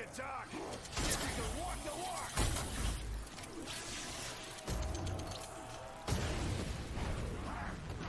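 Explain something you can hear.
A gun fires energy blasts in bursts.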